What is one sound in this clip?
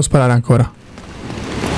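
A young man speaks briefly and with animation into a microphone.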